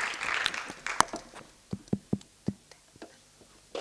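A guitar plucks a few single notes.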